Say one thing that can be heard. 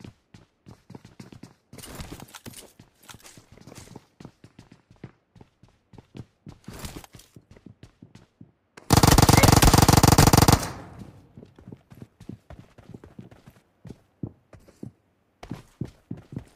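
Footsteps patter quickly on hard floors.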